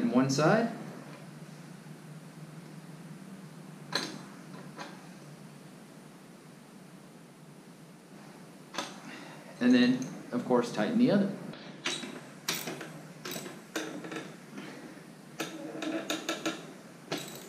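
Metal parts of a bicycle clink and click.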